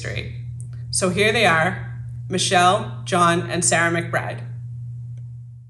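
A young woman speaks calmly and clearly into a close microphone.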